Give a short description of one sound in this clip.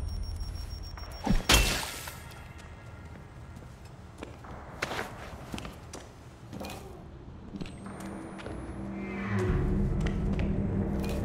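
Footsteps tap on a hard tiled floor.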